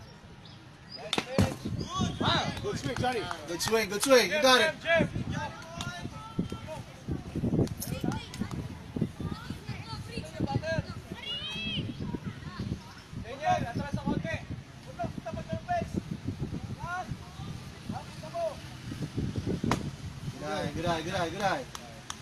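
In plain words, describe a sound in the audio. Young players shout and cheer outdoors.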